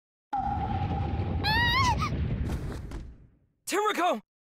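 A drum booms once with a deep, rumbling ring.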